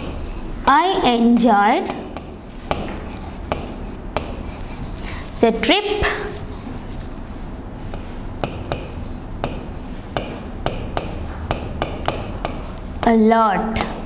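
A pen taps and scrapes on a hard board.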